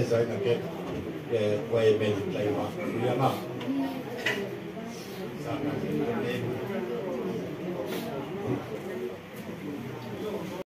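A crowd murmurs quietly.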